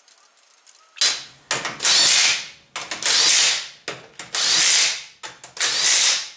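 An impact wrench whirs in loud bursts, tightening wheel nuts.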